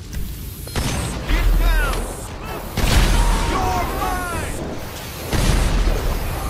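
A tank cannon fires with heavy booms.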